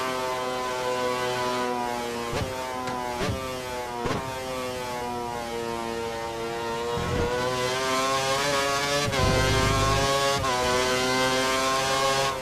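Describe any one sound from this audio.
A racing car engine whines at high revs, dropping in pitch as it shifts down and rising again as it speeds up.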